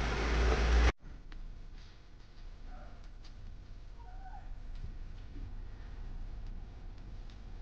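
An engine hums softly as a vehicle crawls slowly over rocks in the distance.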